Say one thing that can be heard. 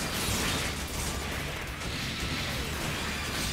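Robots fire energy blasts in rapid bursts.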